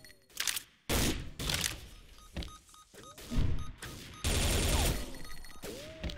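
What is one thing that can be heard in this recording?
Rapid gunfire bursts from an automatic rifle.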